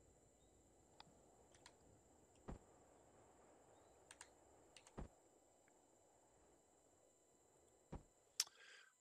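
Blocks snap into place with short, sharp clicks.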